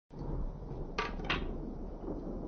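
A wooden object clatters onto a stone surface.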